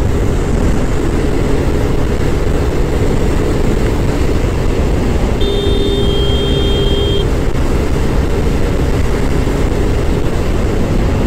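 Wind roars loudly and steadily past the microphone.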